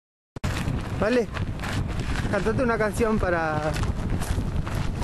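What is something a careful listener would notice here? A young woman talks close by, outdoors.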